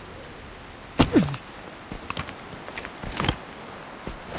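A plastic case clicks open.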